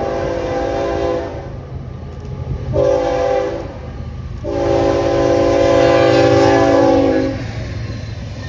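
A train horn blows loudly in long blasts.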